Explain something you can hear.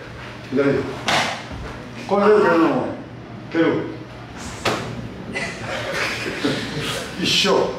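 An elderly man speaks firmly nearby, in short bursts.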